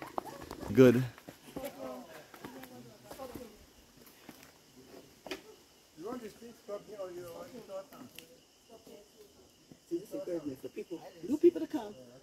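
Footsteps scuff on stone steps.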